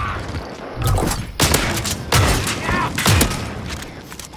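Rifle shots fire in loud bursts.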